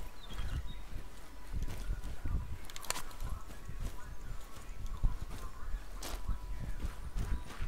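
Footsteps crunch steadily on gravel and grass.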